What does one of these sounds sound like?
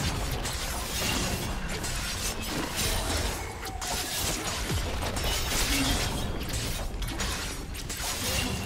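Game spells and weapons clash and whoosh in a busy fight.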